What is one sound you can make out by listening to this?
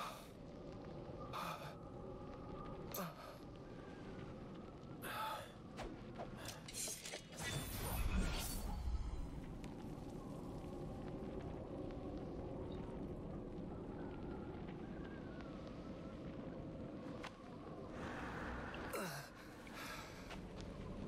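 A young man speaks quietly and tensely.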